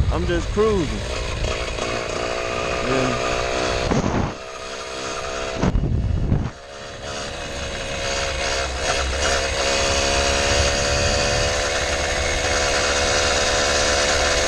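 Wind buffets loudly past a moving rider outdoors.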